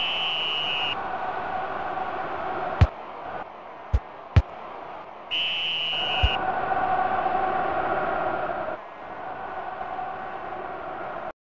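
A stadium crowd roars steadily, swelling and dipping.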